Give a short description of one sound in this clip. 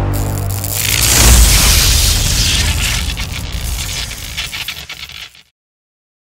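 Thunder rumbles and crackles loudly, then fades away.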